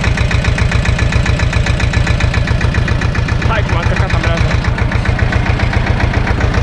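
A tractor engine chugs steadily at idle close by.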